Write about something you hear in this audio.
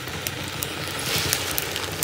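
Leaves rustle as a hand presses them into a pot.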